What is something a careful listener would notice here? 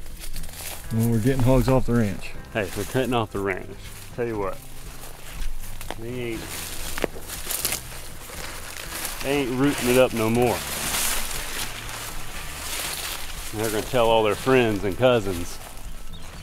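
A man talks calmly nearby.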